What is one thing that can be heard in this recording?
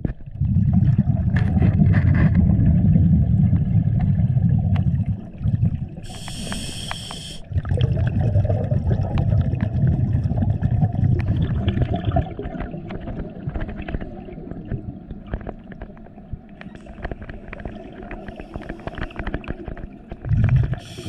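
Water rumbles and churns in a low, muffled rush underwater.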